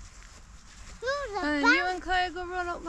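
A young child sings loudly in a high voice nearby.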